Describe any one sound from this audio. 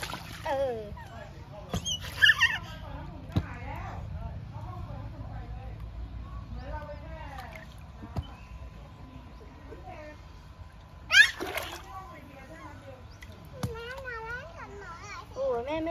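Water splashes and laps as small children move about.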